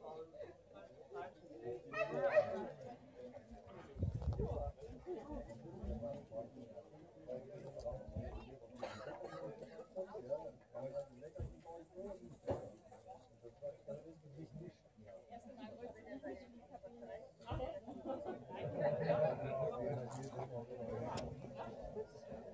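A group of adult men and women talk casually nearby outdoors.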